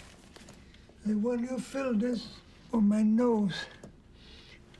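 An elderly man speaks slowly in a rough, hoarse voice.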